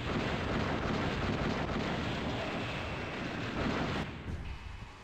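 Loud explosions roar and rumble.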